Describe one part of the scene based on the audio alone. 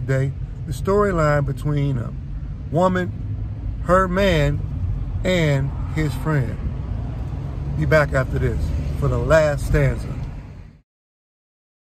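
A middle-aged man talks with animation close to a phone microphone.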